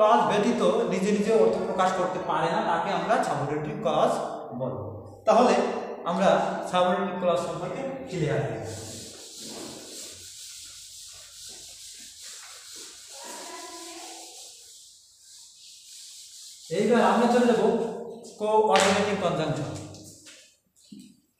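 A young man speaks clearly and with animation, close by.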